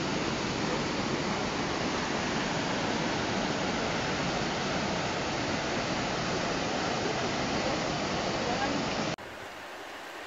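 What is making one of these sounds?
Water rushes loudly over rocks in rapids.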